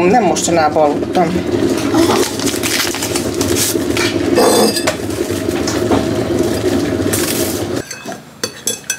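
An electric kettle rumbles and hisses as water boils.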